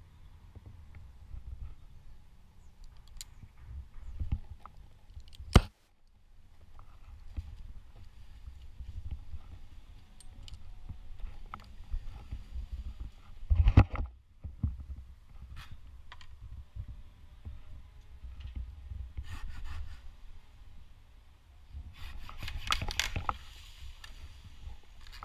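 Tree branches rustle and scrape.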